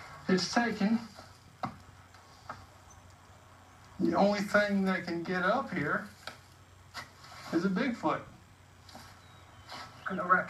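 A man speaks calmly through a television speaker.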